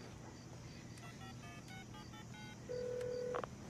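Phone keys beep quickly as a number is dialled.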